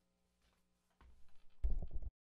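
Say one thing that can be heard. An electric bass guitar plays loud low notes through an amplifier.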